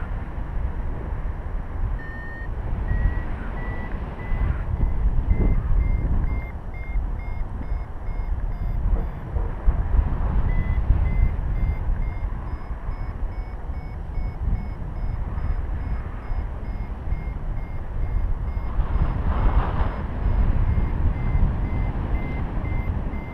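Strong wind rushes and buffets loudly against a microphone.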